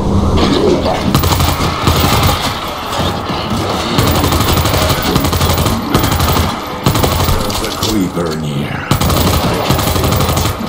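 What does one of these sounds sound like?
Rapid gunshots fire in bursts.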